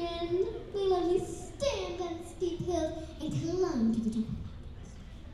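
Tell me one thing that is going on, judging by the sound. A young girl sings through a microphone in a large hall.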